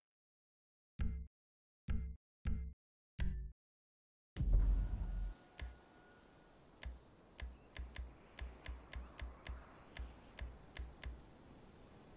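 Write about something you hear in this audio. Short electronic menu clicks sound one after another.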